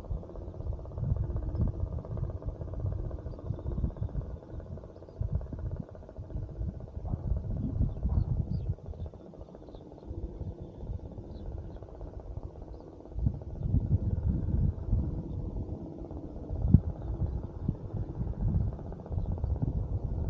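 Wind buffets loudly against the microphone outdoors.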